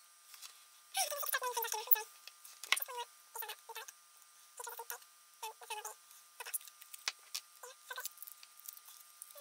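Foil crinkles and rustles as hands handle it.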